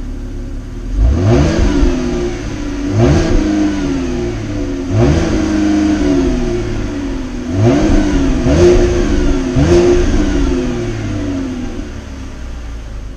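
A car engine revs sharply several times and falls back to idle.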